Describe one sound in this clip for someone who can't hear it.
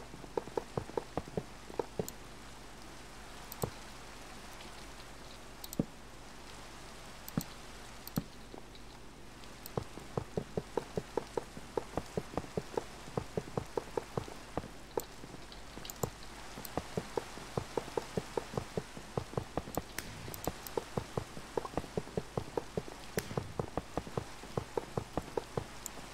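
Blocks are placed with quick, sharp knocks.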